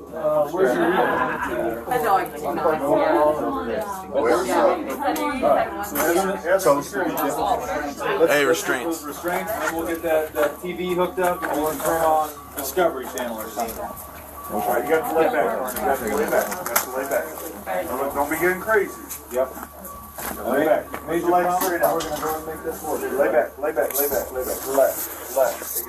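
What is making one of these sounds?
Several men talk close by, overlapping one another.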